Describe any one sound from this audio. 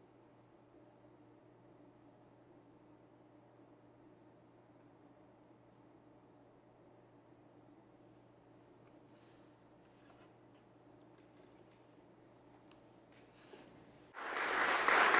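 A string ensemble plays a soft, held note.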